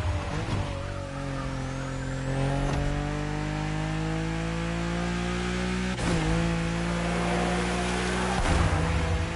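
A racing car engine roars and climbs in pitch as it speeds up through the gears.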